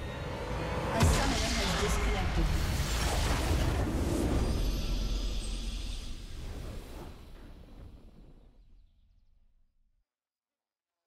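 A game's victory fanfare swells with a loud boom, then fades away.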